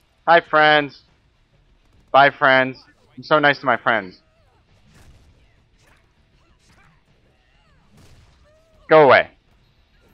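A young man speaks with animation into a close microphone, in short bursts.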